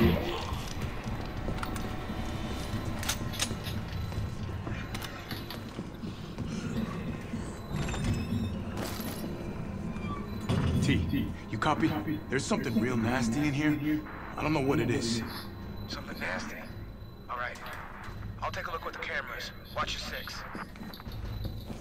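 Heavy boots step on a hard floor.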